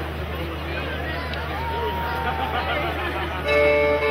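A fiddle plays a melody.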